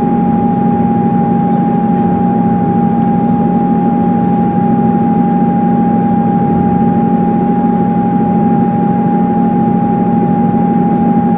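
A train rumbles and hums steadily from inside a carriage.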